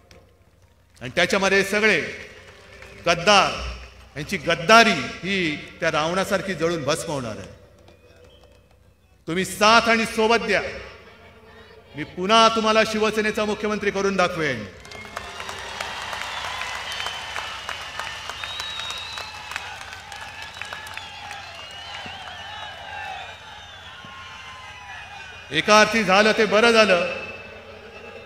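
A man speaks forcefully through loudspeakers, echoing outdoors.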